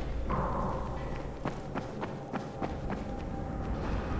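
Quick footsteps thud on a hard floor.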